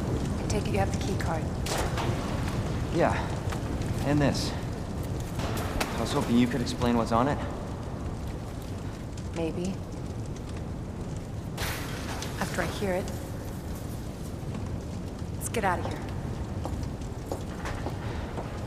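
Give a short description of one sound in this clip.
A woman speaks calmly and close.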